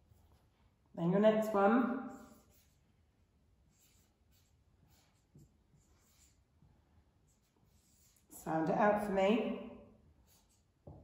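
A woman speaks clearly and slowly, close by.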